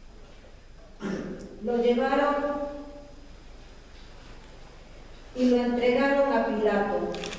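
A woman sings loudly in a large echoing hall.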